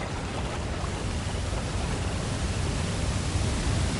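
A waterfall rushes nearby.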